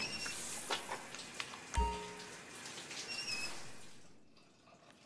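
Water sprays steadily from a shower.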